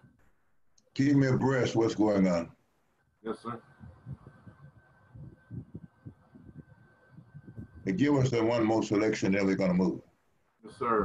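An elderly man speaks slowly over an online call.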